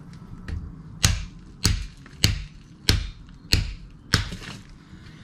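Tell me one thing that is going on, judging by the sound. A hammer strikes metal in a steady series of sharp, ringing blows.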